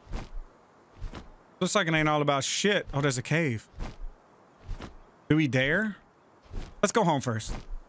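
Large wings flap with soft, repeated whooshes.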